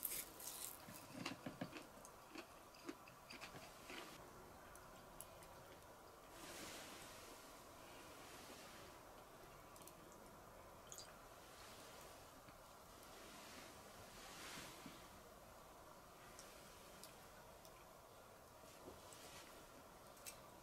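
Dishes clink and knock softly on a wooden table.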